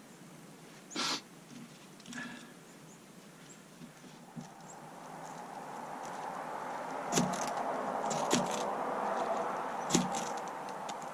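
Sticks and bark rustle and knock as a man handles kindling.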